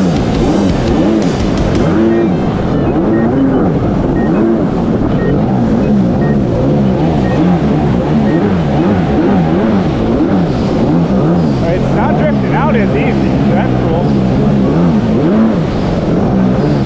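A jet ski engine roars and revs up and down.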